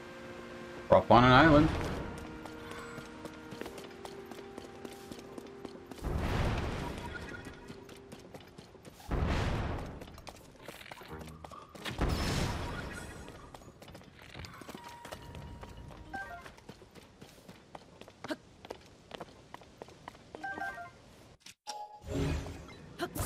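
Game sound effects ring out in bursts.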